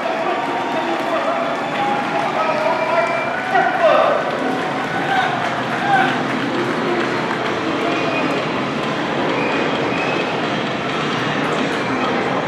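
A large crowd cheers and shouts nearby, outdoors.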